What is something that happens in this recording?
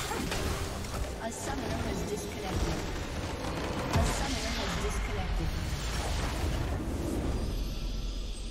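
Game spell effects and hits crackle and boom in a loud battle.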